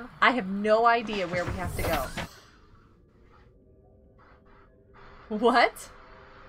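A young woman talks with animation through a close microphone.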